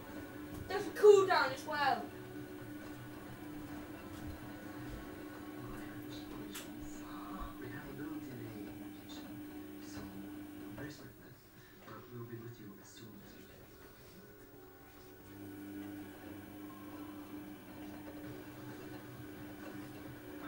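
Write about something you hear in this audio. Water sloshes inside a washing machine drum.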